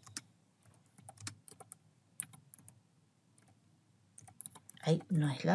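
Keys click on a keyboard as someone types.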